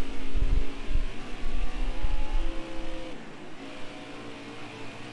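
A racing car engine drones steadily, its pitch shifting slightly.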